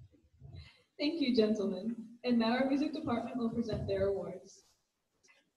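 A young woman speaks into a microphone over a loudspeaker in a large echoing hall.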